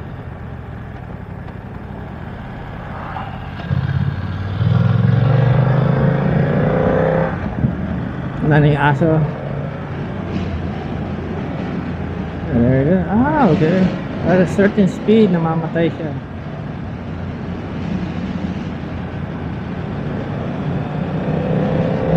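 A motorcycle engine hums steadily and revs up and down as the bike rides along.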